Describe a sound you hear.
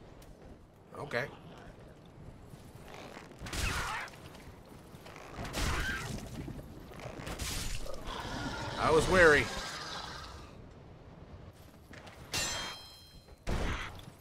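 Heavy weapons swing and strike with loud clashing blows.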